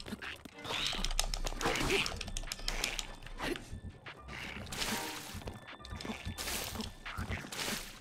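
A sword clashes and strikes in a fight.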